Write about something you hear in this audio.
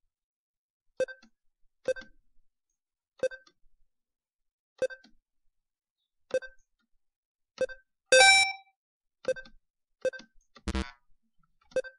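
A computer game plays short electronic blips.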